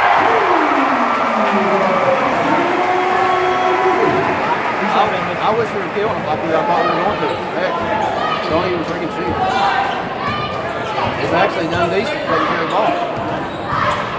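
A large crowd cheers and shouts in a large echoing gym.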